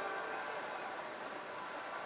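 A crowd cheers through a television speaker.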